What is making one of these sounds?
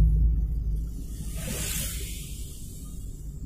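A car passes close by in the opposite direction with a brief whoosh.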